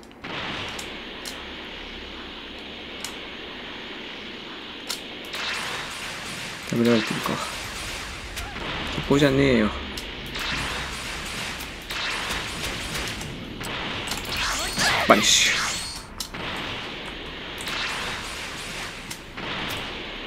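Energy blasts whoosh and crackle repeatedly.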